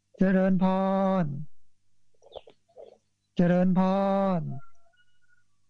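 A man chants in long, steady held tones into a microphone.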